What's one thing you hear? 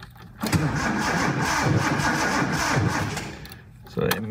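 A car engine cranks and starts, then runs with a rough idle.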